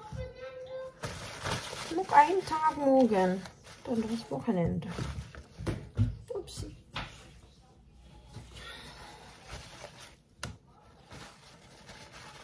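A paper towel crinkles as it is handled.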